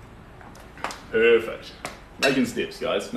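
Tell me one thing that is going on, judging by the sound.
A young man speaks cheerfully close by.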